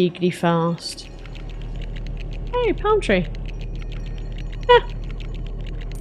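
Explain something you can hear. A magical portal shimmers and chimes.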